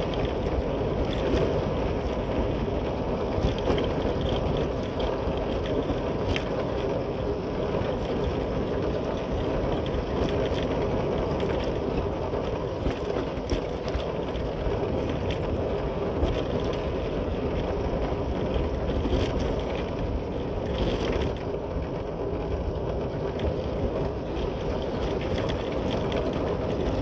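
A motorcycle engine hums steadily close by.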